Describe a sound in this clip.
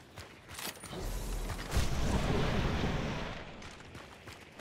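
Thunder rumbles loudly, then fades.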